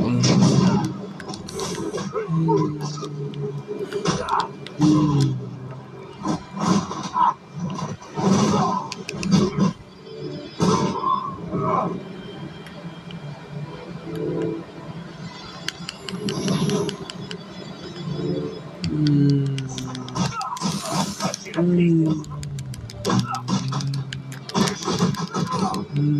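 Video game combat sounds, with thuds, whooshes and crackling, play from a television loudspeaker in bursts.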